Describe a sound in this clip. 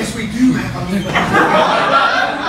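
An audience laughs.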